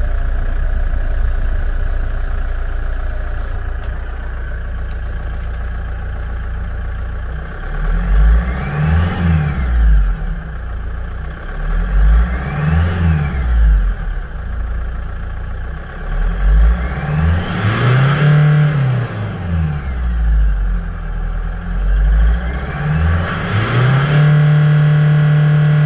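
A vehicle engine idles with a low rumble.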